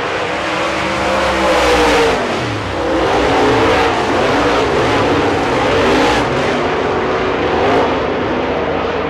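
Engines whine in pitch as cars pass close by.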